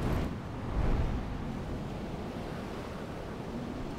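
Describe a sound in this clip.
Wind rushes steadily past a figure falling through the air.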